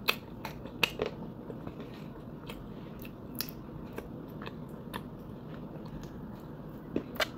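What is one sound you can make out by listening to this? Wet chewing and smacking mouth sounds come from very close by.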